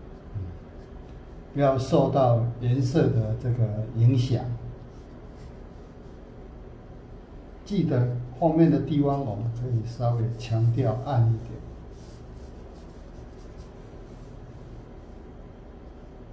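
A brush strokes softly across paper.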